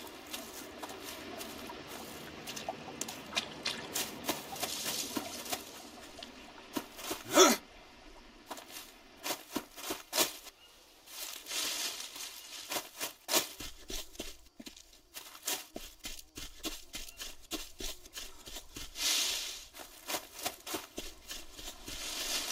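Footsteps rustle and crunch through dense leaves and undergrowth.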